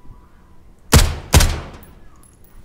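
A rifle fires two loud shots that echo.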